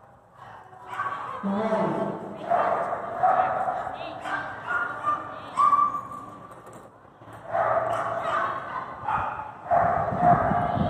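A woman calls out commands to a dog in a large echoing hall.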